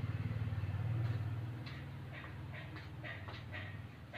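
A dove coos softly.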